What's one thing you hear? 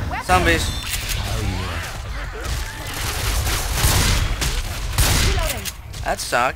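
Gunshots fire in rapid bursts, ringing loudly.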